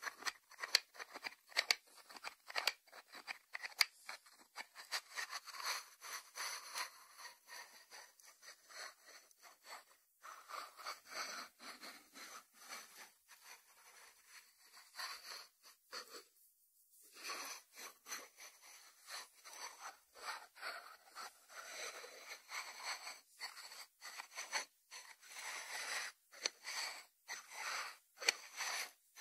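A ceramic dish shifts and scrapes against a wooden board.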